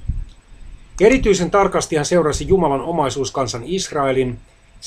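A middle-aged man speaks calmly and close to the microphone.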